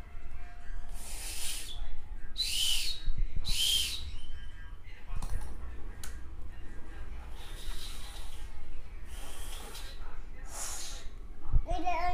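A young girl slurps and sucks loudly on an ice lolly up close.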